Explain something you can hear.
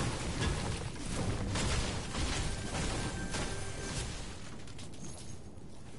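A pickaxe swings and strikes a wooden chest.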